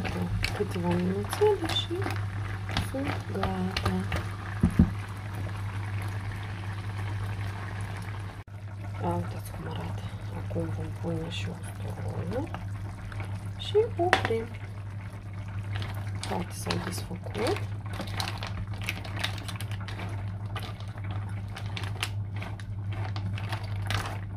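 A spatula stirs mussel shells, which clatter against a pan.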